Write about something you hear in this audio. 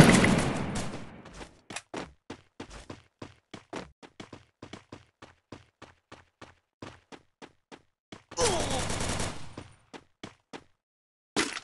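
Footsteps thud quickly across grass.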